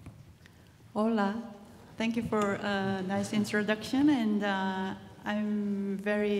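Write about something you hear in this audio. A woman speaks clearly through a microphone over loudspeakers in a large hall.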